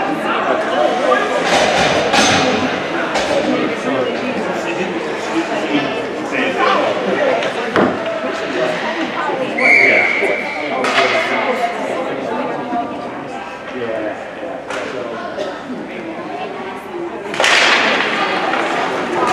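Spectators chatter in the stands nearby.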